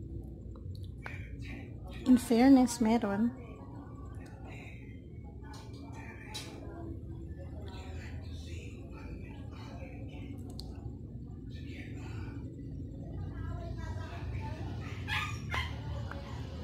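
A woman makes wet mouth sounds and clicks close to a microphone.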